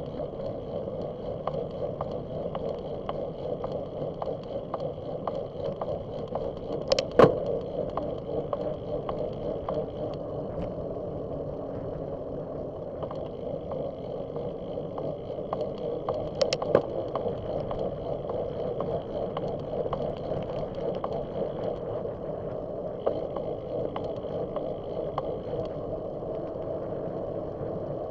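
Small hard wheels roll steadily over rough pavement, clicking over cracks.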